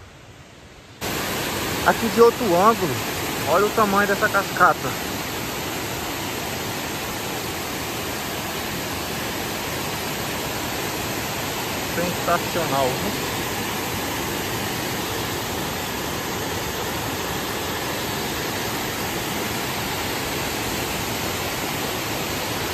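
A waterfall rushes and roars steadily over rocks.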